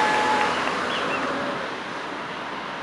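A car drives away along a road.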